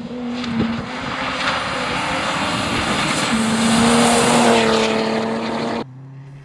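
A rally car engine roars loudly as the car speeds past.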